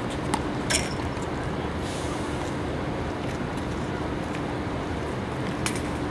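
A tennis ball bounces and is struck with sharp, distant thwacks on a hard court.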